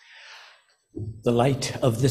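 An older man speaks warmly into a microphone.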